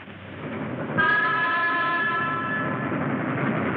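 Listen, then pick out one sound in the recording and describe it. A train whistle blows.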